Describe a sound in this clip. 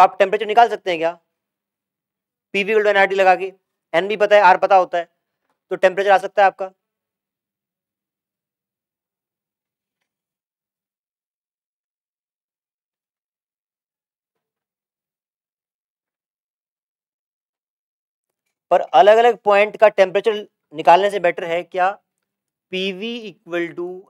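A man lectures calmly into a microphone, pausing now and then.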